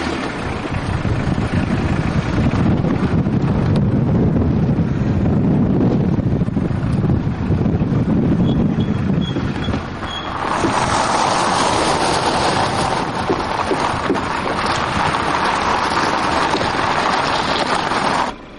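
A car engine hums steadily nearby.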